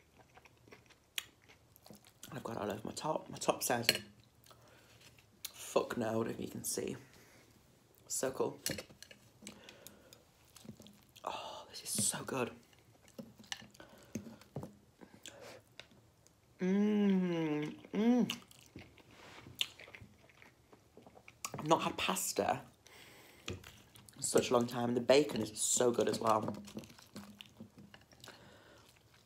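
A fork scrapes and clinks against a glass dish.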